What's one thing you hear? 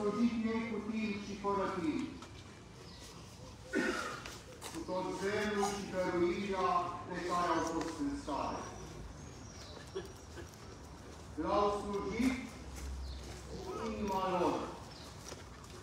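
A woman speaks outdoors through a loudspeaker, in slow, drawn-out phrases.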